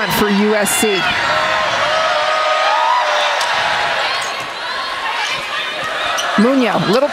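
A crowd cheers and chatters in a large echoing arena.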